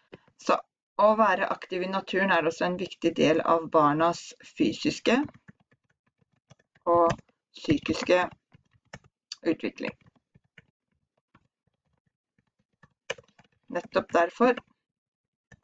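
A young woman speaks calmly and slowly into a headset microphone, pausing often.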